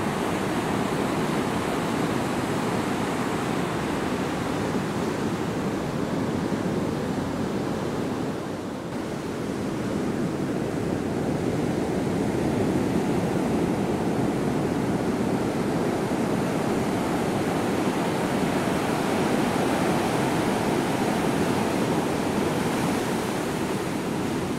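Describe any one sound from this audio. Surf washes up the sand and hisses.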